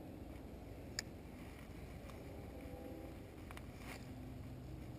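A fishing reel clicks.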